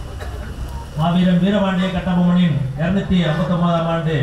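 A second middle-aged man speaks loudly into a microphone over loudspeakers.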